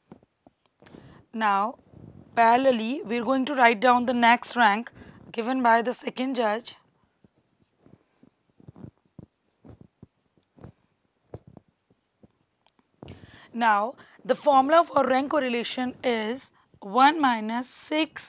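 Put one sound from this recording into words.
A woman speaks calmly and clearly, as if explaining, close to a microphone.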